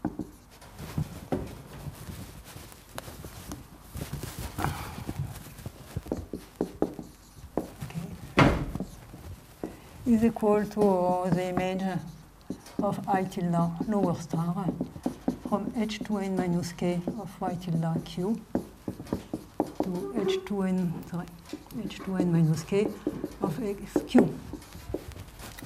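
A marker taps and squeaks on a whiteboard.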